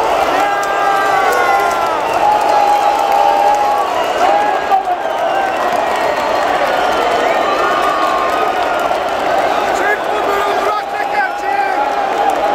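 A huge stadium crowd chants and sings loudly in unison.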